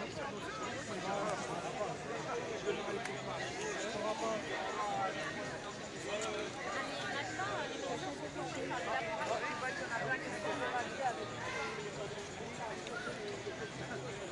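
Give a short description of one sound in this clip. A crowd of men and women talks all around outdoors.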